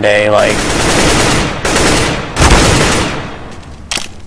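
A rifle fires loud bursts that echo down a stone passage.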